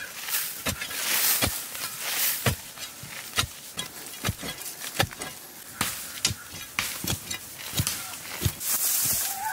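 A digging tool strikes and scrapes loose soil.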